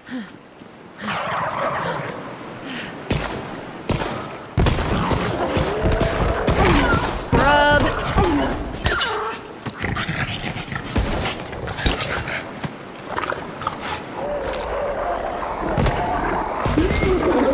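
Guns fire in rapid bursts with loud blasts.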